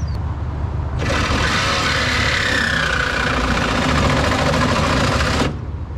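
A power tool whirs loudly, grinding against metal.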